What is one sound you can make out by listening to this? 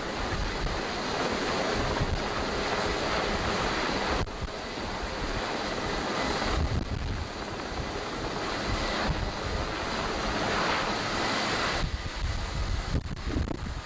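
A helicopter's rotor thumps and roars up close.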